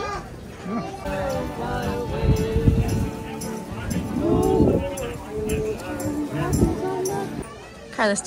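An acoustic guitar strums a tune.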